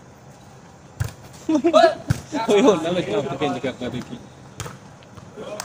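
A volleyball is struck with a thud.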